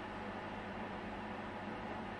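Liquid trickles into a metal can.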